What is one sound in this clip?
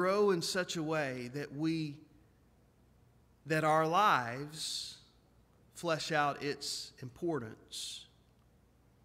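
A middle-aged man speaks earnestly through a microphone, with pauses.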